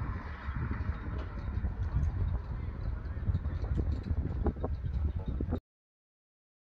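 Flags flap and snap in the wind.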